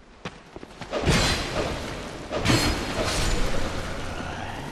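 Heavy weapon blows land with loud, sudden impacts.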